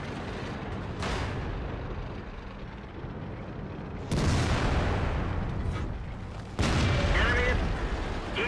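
A tank cannon fires with loud, booming blasts.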